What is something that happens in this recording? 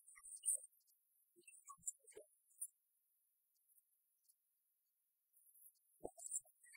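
An older woman reads aloud into a microphone.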